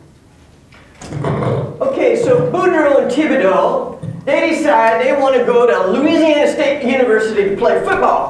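A middle-aged woman speaks with animation through a microphone in a large hall.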